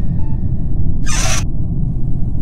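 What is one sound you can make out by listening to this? A game panel opens with a short electronic whoosh.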